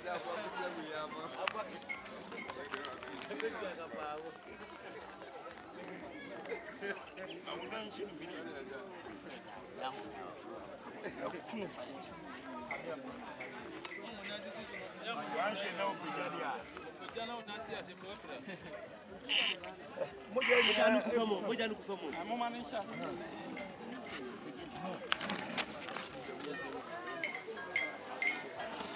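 A crowd of men and women talk and call out close by, all at once.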